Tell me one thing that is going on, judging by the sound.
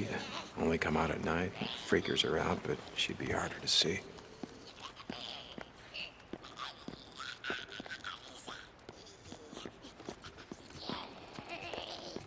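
Footsteps tread across a hard floor.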